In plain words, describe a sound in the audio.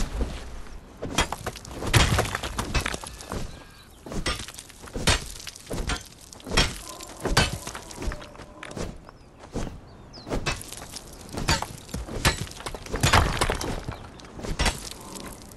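A pick strikes stone again and again with sharp cracks.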